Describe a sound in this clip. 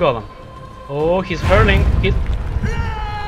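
A magic blast crackles and booms.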